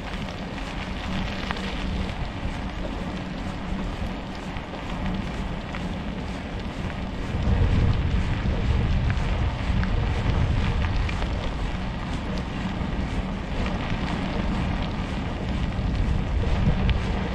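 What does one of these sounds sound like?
Tyres roll steadily over rough asphalt with a low rumble.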